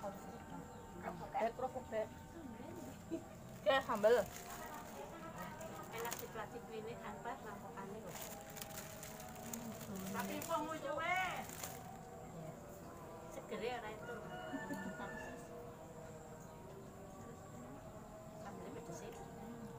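Women and children chatter nearby.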